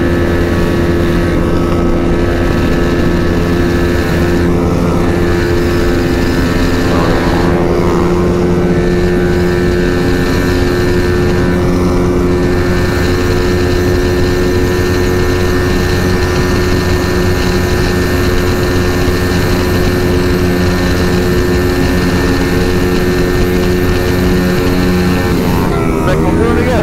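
A motorcycle engine roars at high speed with a steady, high drone.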